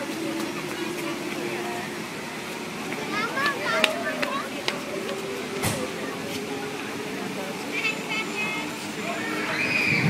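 A fountain splashes steadily nearby.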